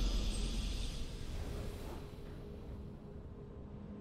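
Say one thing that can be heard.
A game's victory fanfare swells and fades away.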